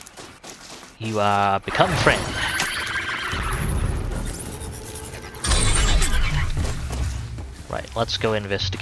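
A mechanical creature whirs and groans loudly.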